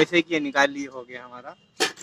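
A hammer taps on metal.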